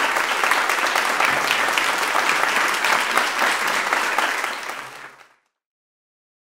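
An audience applauds loudly in a large hall, then the applause fades away.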